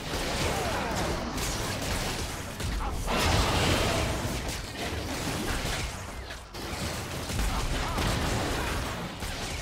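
Weapon strikes thud and clang repeatedly.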